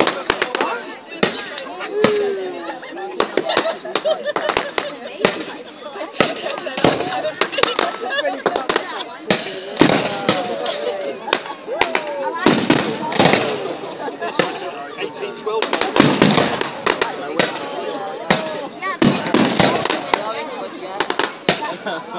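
Fireworks bang and pop sharply, again and again.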